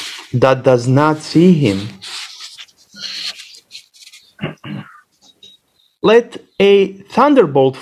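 A man chants in a melodic voice, heard through an online call.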